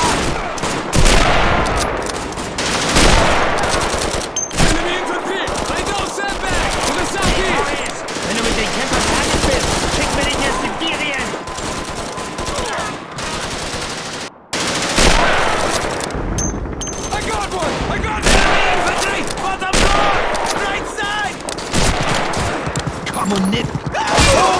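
Rifle shots crack loudly, one at a time, and echo away.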